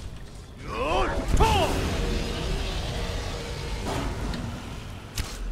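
Fire roars and whooshes.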